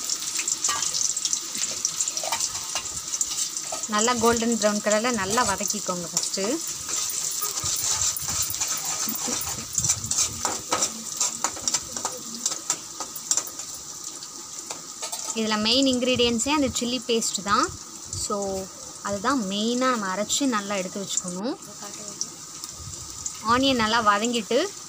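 Oil sizzles steadily in a hot pan.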